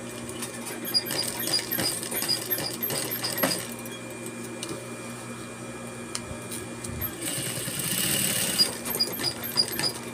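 A sewing machine stitches in quick, rhythmic bursts.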